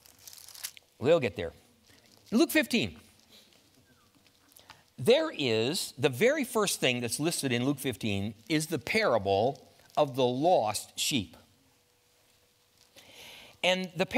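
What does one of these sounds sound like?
An older man speaks calmly and with emphasis through a microphone.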